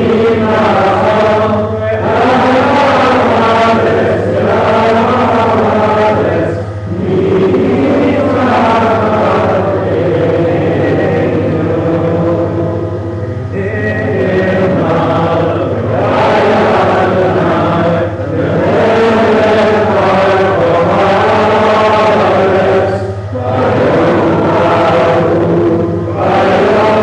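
A man chants a prayer in a sung voice through a microphone, in a reverberant hall.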